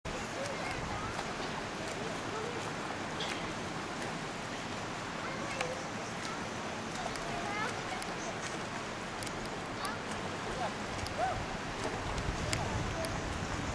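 A river flows with a steady rushing of water.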